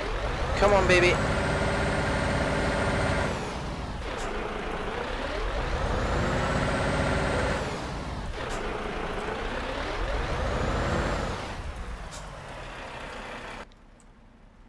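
A heavy truck engine rumbles and repeatedly revs up and settles.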